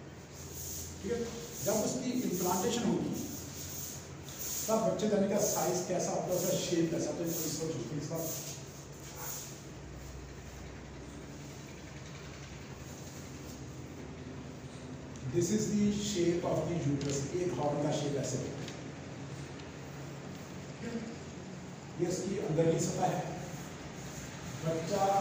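A middle-aged man lectures calmly in a small room with a slight echo.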